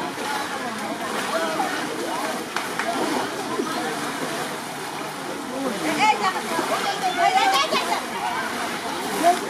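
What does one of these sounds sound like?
A large crowd of men shout and chatter outdoors.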